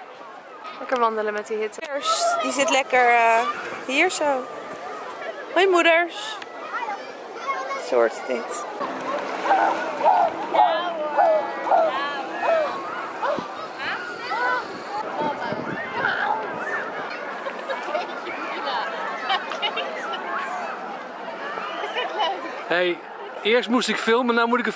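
Young women talk and laugh nearby outdoors.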